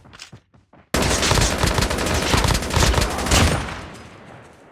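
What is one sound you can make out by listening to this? A rifle fires in a loud, rapid burst.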